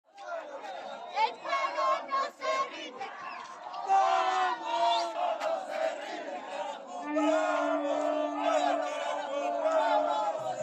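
A crowd of protesters shouts and chants loudly outdoors.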